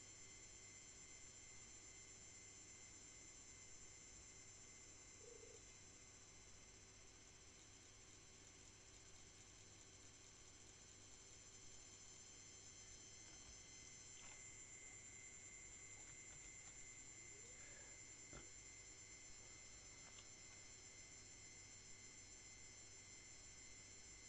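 Soft, steady music plays quietly.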